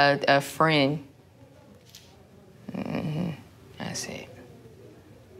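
A young woman speaks calmly and close to a microphone, in short bursts.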